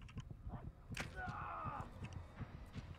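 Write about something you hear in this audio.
A crossbow is cocked with a mechanical click and rattle.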